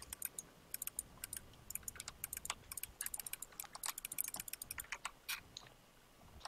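Keyboard keys and a mouse click rapidly and steadily.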